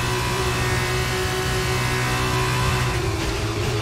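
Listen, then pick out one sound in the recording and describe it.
A racing car engine roars loudly at high revs.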